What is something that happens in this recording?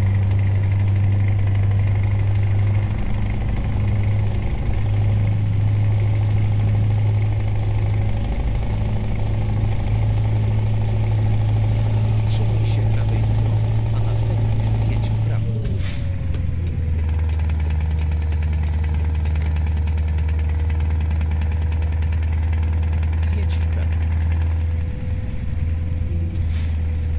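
A truck engine drones steadily, dropping to a lower pitch partway through.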